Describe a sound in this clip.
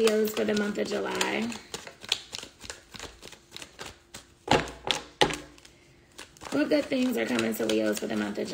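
Cards flick and riffle as a young woman shuffles them.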